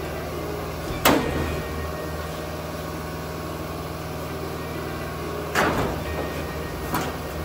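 Metal clanks sharply against a metal panel a few times.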